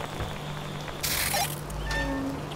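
Electric sparks crackle and hiss in a short burst.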